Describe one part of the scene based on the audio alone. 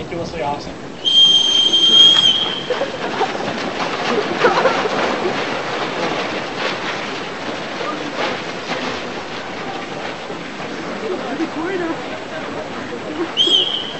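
A large crowd chatters and moves about outdoors.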